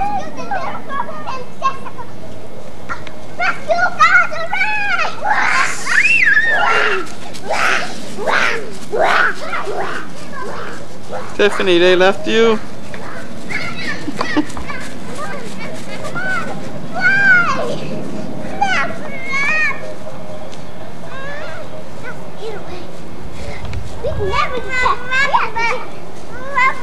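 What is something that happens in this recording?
Young children shout and squeal excitedly nearby outdoors.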